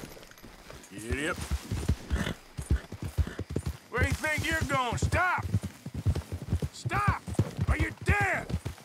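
A horse gallops, its hooves thudding on soft ground.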